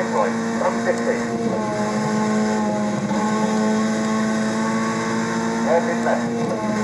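A racing game's car engine drones steadily from a television loudspeaker.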